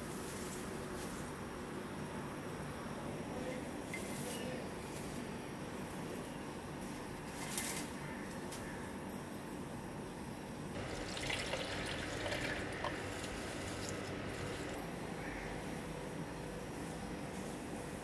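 Flower stems rustle as hands arrange them in a glass vase.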